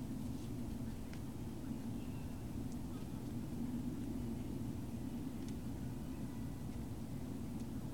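A dog's paws patter softly on dry pine needles.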